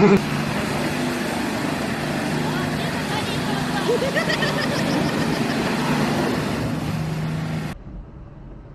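Truck tyres splash through mud and slush.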